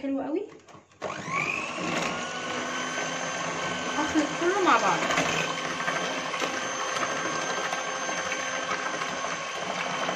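An electric hand mixer whirs in batter.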